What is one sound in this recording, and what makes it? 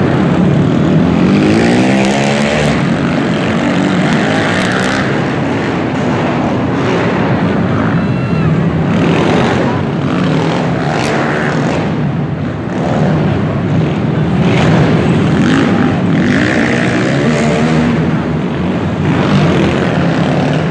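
Quad bike engines rev and whine loudly around an indoor arena.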